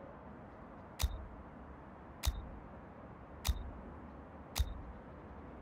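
Game menu clicks pop out one after another.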